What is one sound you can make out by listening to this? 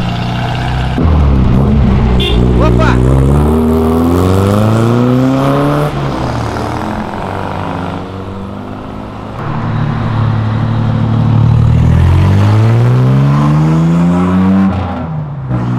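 A car engine revs up through the gears as a car speeds off.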